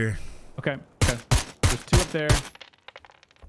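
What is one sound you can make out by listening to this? Rifle shots crack in quick succession.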